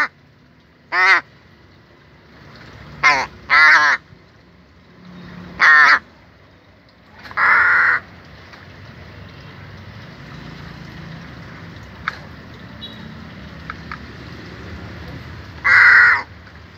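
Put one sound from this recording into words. A crow caws loudly and harshly, close by, in short bursts.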